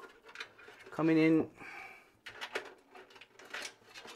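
Small parts click and rattle as hands work inside a metal computer case.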